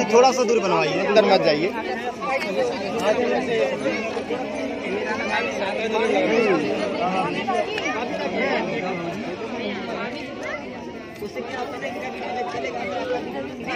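Several people talk at once in the background outdoors.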